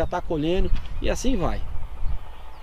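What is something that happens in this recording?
A man speaks calmly close to the microphone.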